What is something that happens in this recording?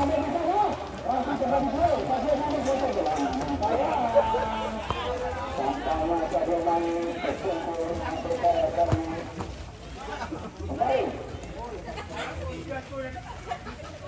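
Men shout and call out outdoors in the distance.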